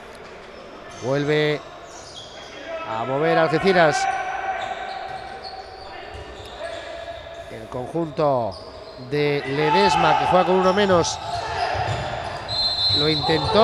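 Young men shout to each other in an echoing hall.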